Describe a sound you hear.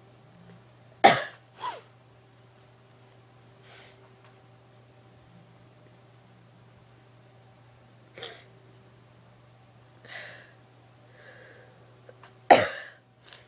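A young woman sneezes loudly close by.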